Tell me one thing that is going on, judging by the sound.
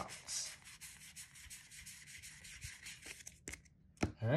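Playing cards riffle and flick quickly between fingers.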